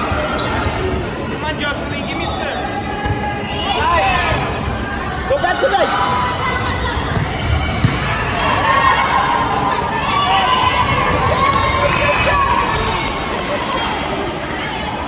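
Young girls call out and cheer in a large echoing gym.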